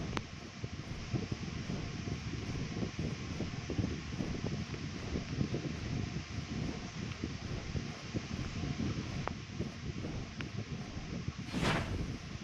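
Large wings beat heavily in a steady rhythm.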